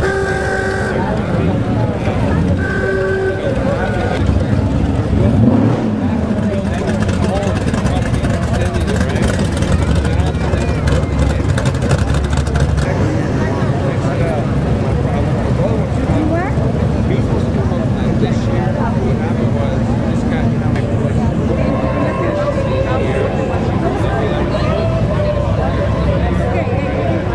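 A crowd chatters outdoors along the street.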